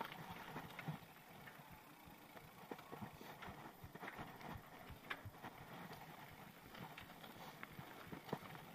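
A mountain bike rattles and clatters over a rough dirt trail.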